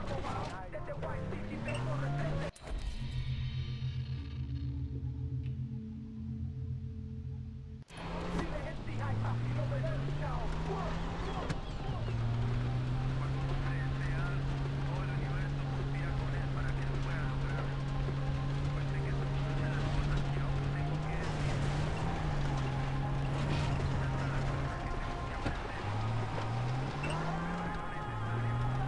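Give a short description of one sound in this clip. Tyres rumble over a sandy dirt track.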